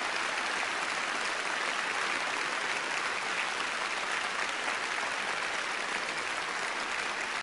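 A large audience applauds steadily in a hall.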